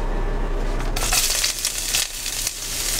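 Chopped green onions sizzle loudly in a hot pan.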